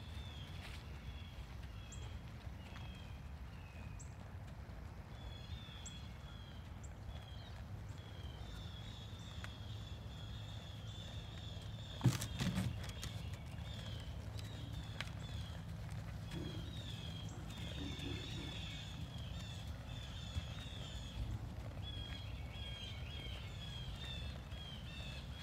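A mule's hooves thud softly on dirt as it walks.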